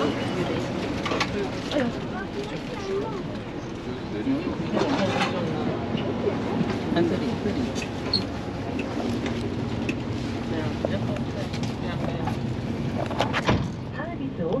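Several passengers chatter in an enclosed bus.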